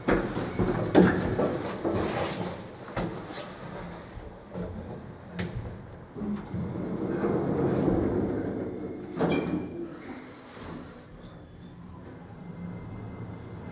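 An elevator car hums as it moves.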